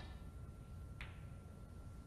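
A snooker ball clacks against another ball.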